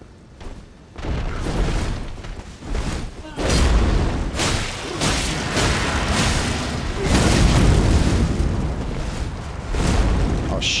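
A huge beast thuds and roars heavily.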